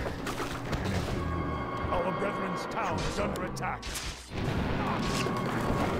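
Clashing weapons and magic spell effects ring out in a game battle.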